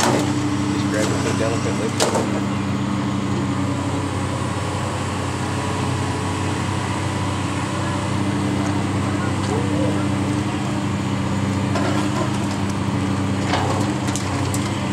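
A heavy excavator engine rumbles steadily nearby.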